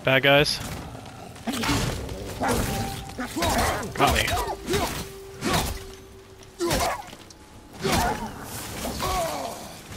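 Wolves snarl and growl in a fight.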